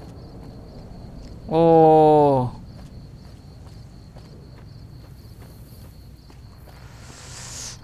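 Footsteps crunch softly on rough ground.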